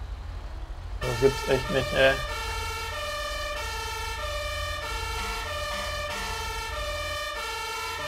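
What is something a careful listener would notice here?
A two-tone siren wails steadily from a fire engine.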